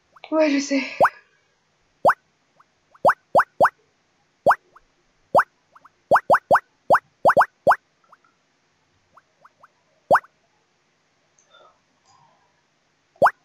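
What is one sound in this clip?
Short rising electronic blips sound as a game worm eats pellets.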